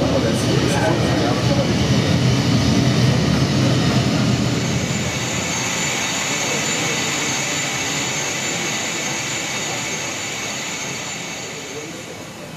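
A jet engine roars low and then settles into a steady high whine.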